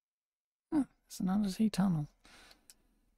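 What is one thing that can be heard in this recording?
A young man speaks briefly with animation into a microphone.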